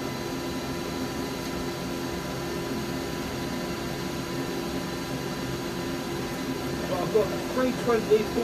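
A wood lathe hums steadily.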